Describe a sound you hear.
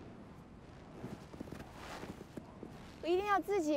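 Footsteps crunch through deep snow.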